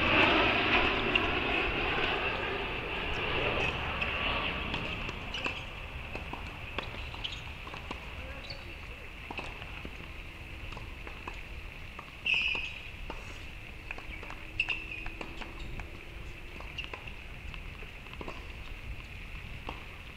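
Sneakers squeak and scuff on a hard court.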